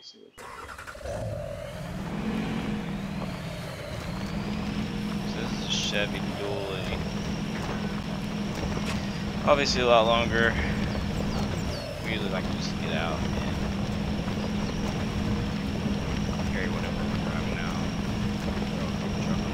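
A truck engine starts and rumbles steadily as the truck drives over rough ground.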